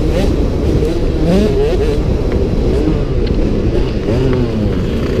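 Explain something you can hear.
A motocross bike engine revs loudly and changes pitch up close.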